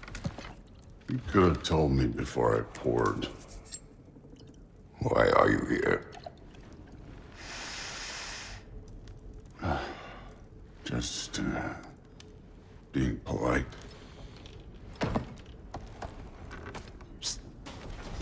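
A deep-voiced man speaks calmly and gruffly.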